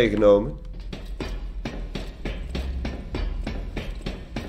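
Boots clank on metal ladder rungs in steady rhythm.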